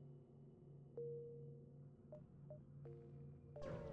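Short electronic beeps chime now and then.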